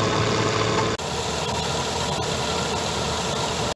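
Grain pours with a rushing hiss into a trailer.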